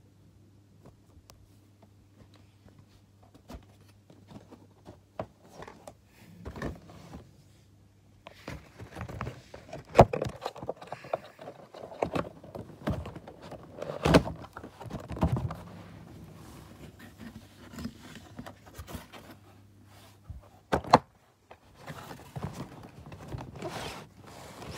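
Cardboard and plastic packaging rustle and crinkle close by.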